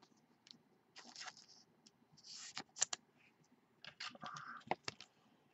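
Plastic card sleeves rustle and click as they are handled.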